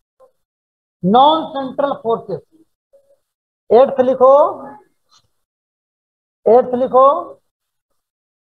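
A man speaks in short bursts through a microphone on an online call.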